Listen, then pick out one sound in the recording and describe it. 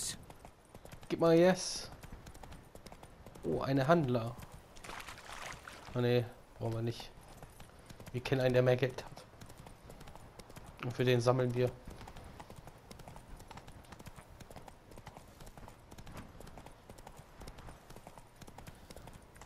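A horse gallops, its hooves drumming on a dirt path.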